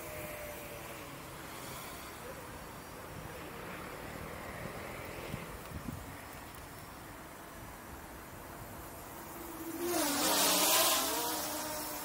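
A small drone's motors whine, rising and falling in pitch as it flies.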